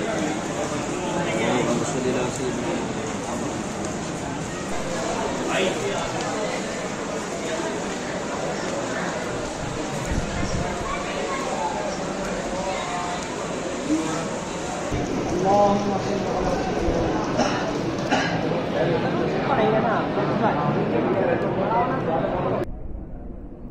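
A group of men murmur prayers together.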